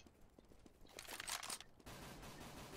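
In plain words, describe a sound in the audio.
A rifle rattles with metallic clicks as it is handled.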